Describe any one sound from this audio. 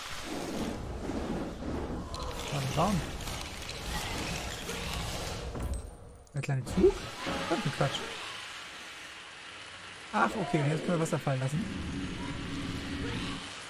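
A magic spell whooshes and sparkles.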